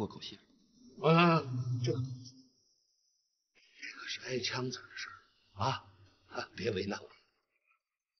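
A middle-aged man speaks with emphasis, close by.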